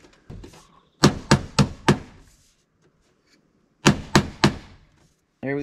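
A hammer taps on metal in sharp knocks.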